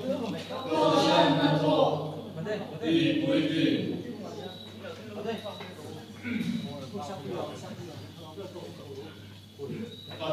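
A group of young men and women sing together through microphones.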